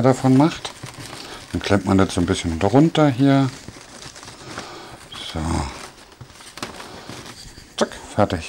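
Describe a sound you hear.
Wrapping paper rustles and crinkles.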